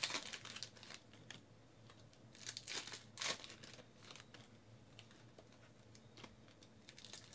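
Trading cards rustle and slap softly as they are handled.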